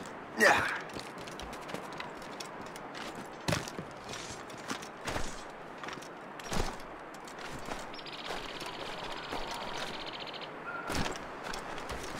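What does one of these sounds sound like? Footsteps crunch on snow and rock.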